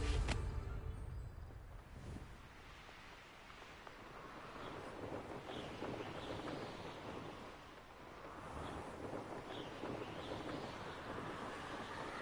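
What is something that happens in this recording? Wind rushes steadily past a rider flying on a broom.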